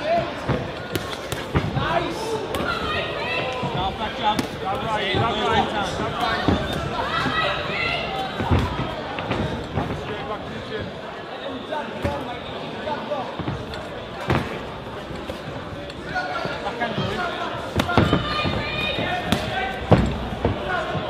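Punches thud sharply on gloves and bodies.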